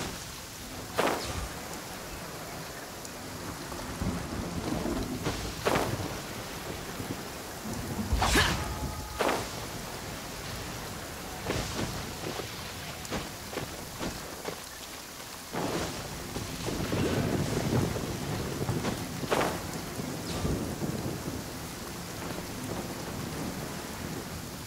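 Wind rushes steadily past a glider in flight.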